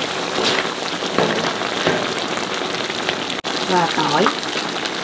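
A metal ladle scrapes and clatters against a wok.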